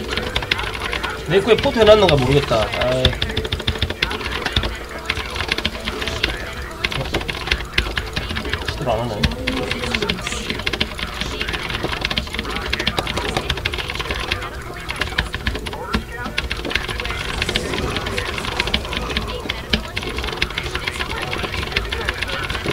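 Keyboard keys click rapidly.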